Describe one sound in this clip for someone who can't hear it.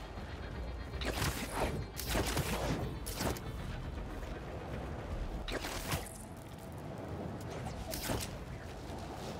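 Webs shoot out with sharp, hissing whooshes, several times.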